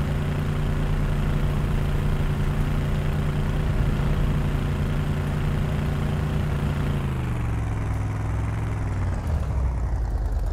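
A vehicle engine drones steadily, then winds down.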